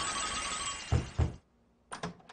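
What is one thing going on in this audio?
Knocks sound twice on a wooden door.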